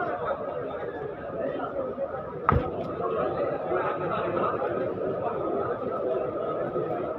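A crowd of men murmur and talk nearby.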